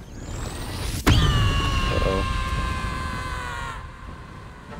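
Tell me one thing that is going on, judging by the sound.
A magic spell bursts with a bright, ringing whoosh.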